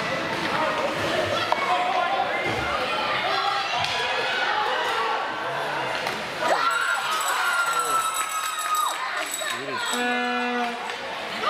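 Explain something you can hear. Skates scrape and hiss across ice in a large echoing arena.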